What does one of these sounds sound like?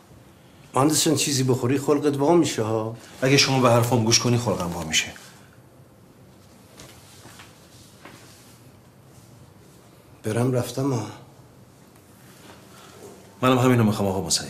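An elderly man speaks briefly, close by.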